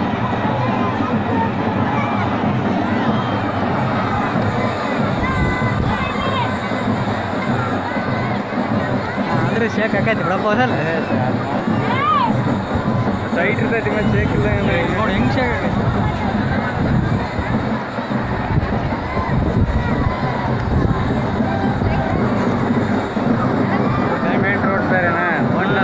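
A large outdoor crowd chatters and shouts with many voices throughout.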